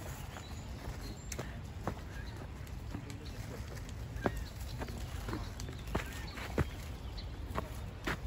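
Footsteps crunch and rustle through tall grass.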